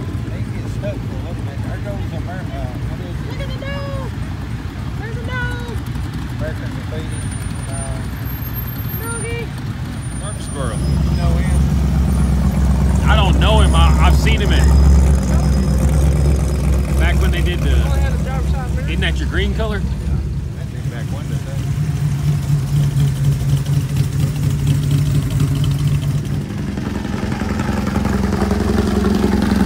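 Car engines rumble and idle as vehicles roll slowly past, outdoors.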